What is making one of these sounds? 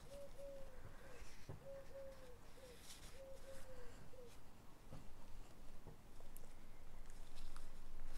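String slides and rubs against paper as it is tied.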